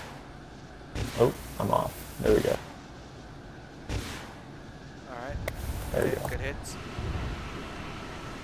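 Explosions boom in quick succession.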